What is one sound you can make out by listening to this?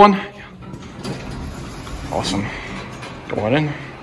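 An elevator door slides open.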